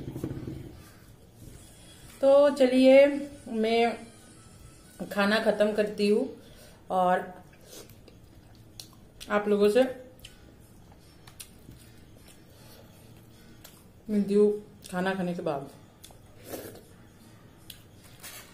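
Fingers squish and mix food on a plate.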